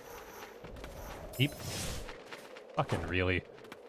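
Video game sword slashes ring out sharply.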